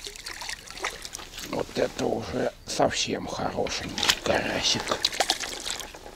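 A fish splashes and thrashes in shallow water.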